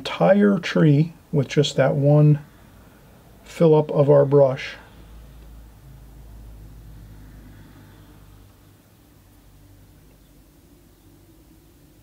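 A paintbrush strokes lightly across paper.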